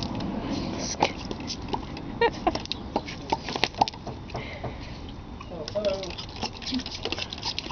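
A spray bottle squirts water in short bursts.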